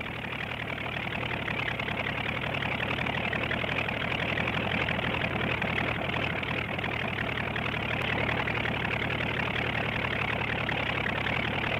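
A helicopter drones overhead and slowly moves away.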